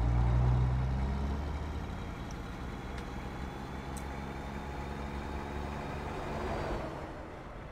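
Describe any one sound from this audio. A truck engine hums low and steady as it drives along.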